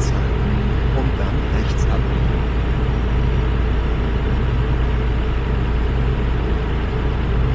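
A truck engine drones steadily on a highway.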